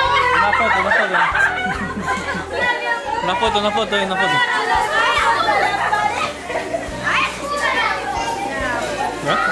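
A crowd of young women and girls chatter and laugh excitedly close by.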